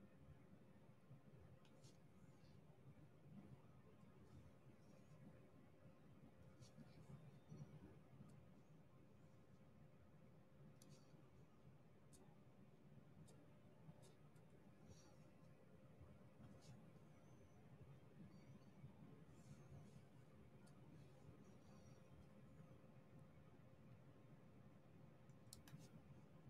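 A pen taps small plastic beads into place with light, faint clicks.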